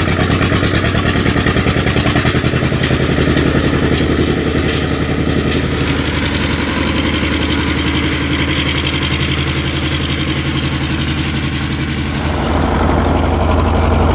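An old tractor engine chugs steadily close by.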